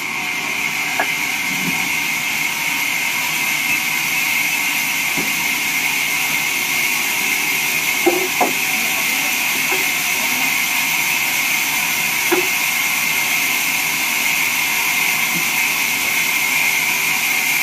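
A band saw whines steadily as it cuts through a log.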